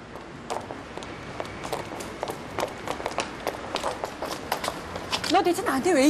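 Heeled shoes click on pavement in quick steps.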